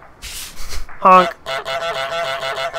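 A goose honks loudly.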